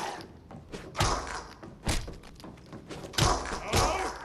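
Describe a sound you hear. A metal pipe thuds heavily against a body.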